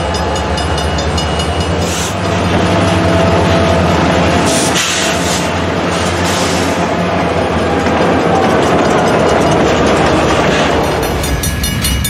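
A diesel locomotive engine rumbles loudly as it passes close by.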